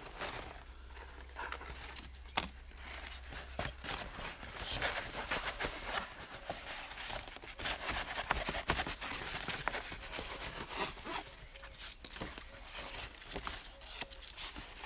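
Plastic sheeting rustles and crinkles as hands handle it.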